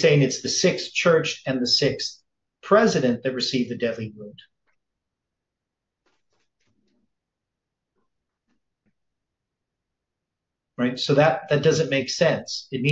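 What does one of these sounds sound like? An elderly man speaks calmly into a close microphone, pausing for several seconds.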